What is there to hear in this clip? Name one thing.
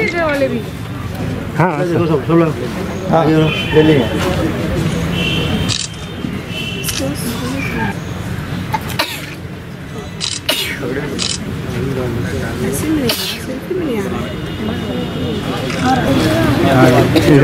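A group of children chatter and call out together close by.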